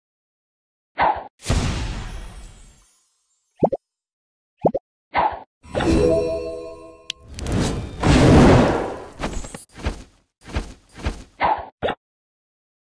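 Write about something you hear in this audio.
Bubbles pop and burst with bright game sound effects.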